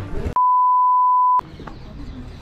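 A steady, high test tone sounds and cuts off abruptly.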